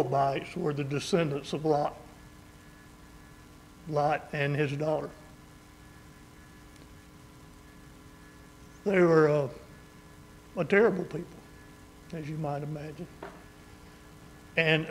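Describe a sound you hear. An elderly man speaks slowly and calmly into a microphone, with long pauses, in a room with a slight echo.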